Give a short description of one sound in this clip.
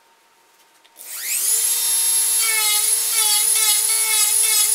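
A high-pitched rotary tool whirs up to speed and whines as it grinds wood.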